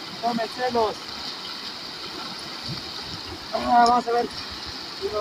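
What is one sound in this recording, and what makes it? A river rushes and splashes over stones.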